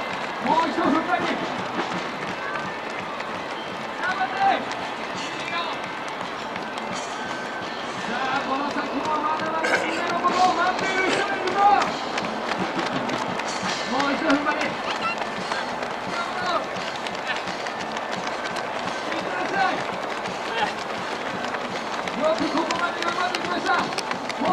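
Men and women call out and chatter nearby outdoors.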